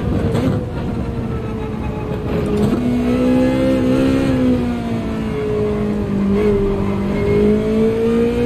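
A racing car engine drones and rises and falls in pitch as it shifts gears.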